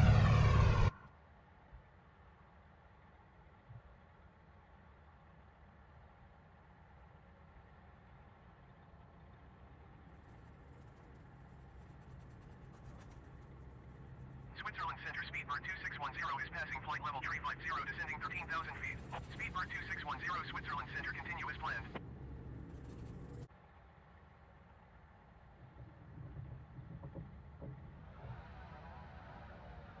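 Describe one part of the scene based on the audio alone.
Propeller engines drone steadily at a low pitch.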